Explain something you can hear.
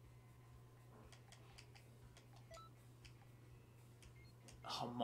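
A game menu ticks with quick clicks as the selection scrolls.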